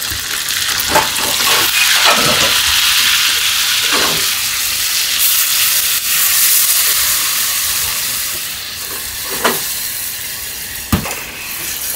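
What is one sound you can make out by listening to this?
A metal pan clanks against a stove grate.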